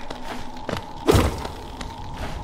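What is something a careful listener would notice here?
A blade swooshes in a quick, sharp slash.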